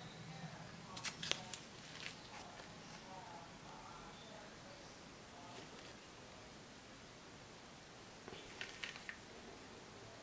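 A plastic package crinkles in a hand.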